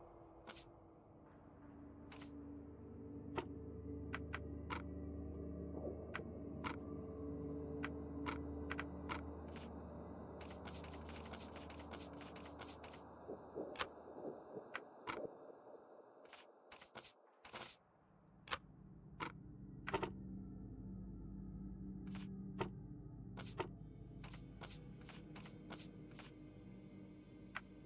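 Short soft clicks sound as menu options are selected.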